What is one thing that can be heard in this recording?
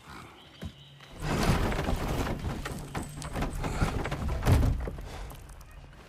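A heavy wooden cart scrapes and rumbles as it is pushed.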